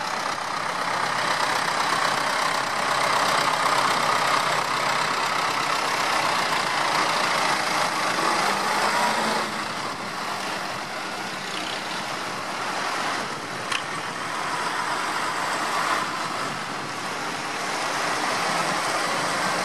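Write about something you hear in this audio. Tractor engines rumble as a line of tractors drives slowly past.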